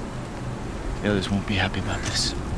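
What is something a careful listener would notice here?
A young man speaks with worry.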